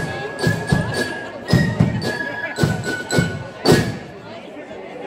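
A brass band plays with booming drum beats, then stops.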